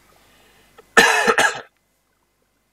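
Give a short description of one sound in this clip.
A young man coughs loudly, close to a microphone.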